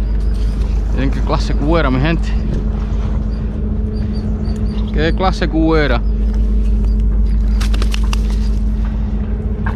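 A fish flaps against stone.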